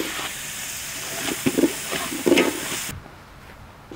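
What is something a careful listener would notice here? A metal spoon scrapes and stirs in a pot.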